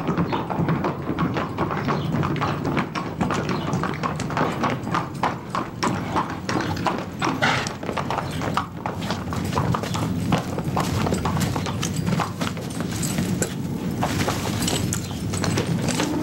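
Horse hooves clop on packed dirt.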